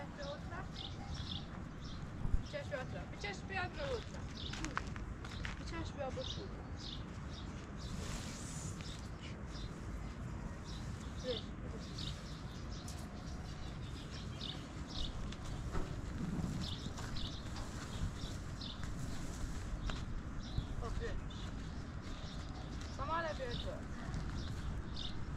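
A young child calls out nearby.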